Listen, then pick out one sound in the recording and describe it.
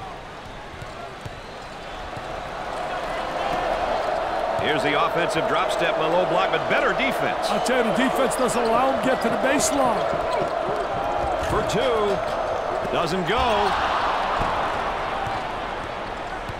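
A large crowd roars steadily in a big echoing arena.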